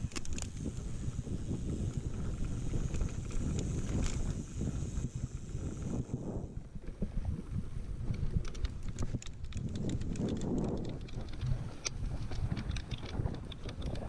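Bicycle tyres rumble and rattle over bumpy grass.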